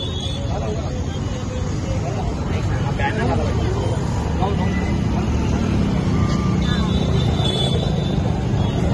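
A man speaks loudly into a microphone, heard through a loudspeaker outdoors.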